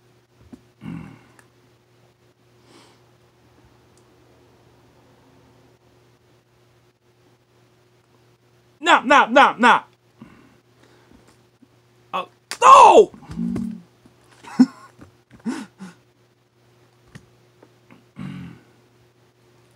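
A man makes playful, animated voice sounds up close.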